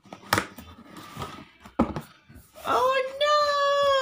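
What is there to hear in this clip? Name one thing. A cardboard box slides and scrapes open.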